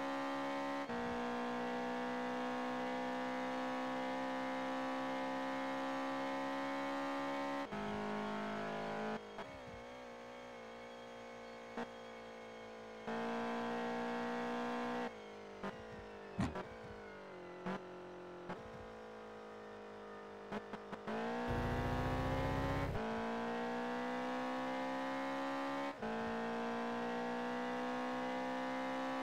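A car engine roars at high revs, dropping and rising as the gears shift.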